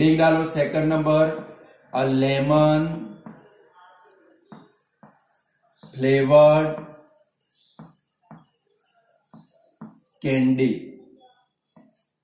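A man speaks calmly and slowly close by, in short phrases with pauses.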